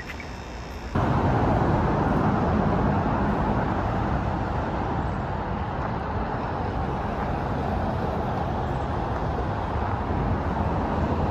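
Traffic rumbles steadily on a highway bridge overhead.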